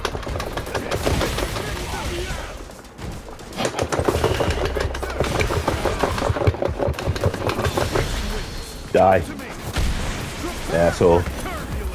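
Punches and kicks land with heavy, rapid thuds and cracks.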